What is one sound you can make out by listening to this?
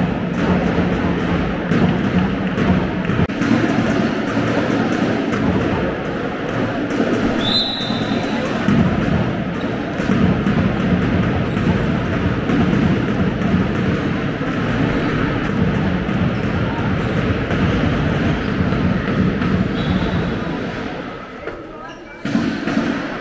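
A ball bounces on a hard floor in a large echoing hall.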